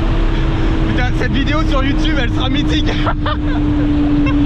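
A man laughs and shouts with excitement nearby.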